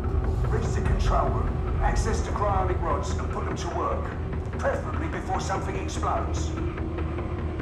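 A man with a deep voice speaks calmly and firmly.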